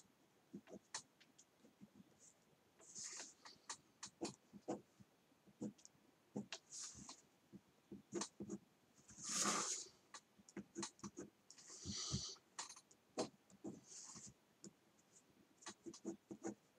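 A plastic ruler taps and slides on paper.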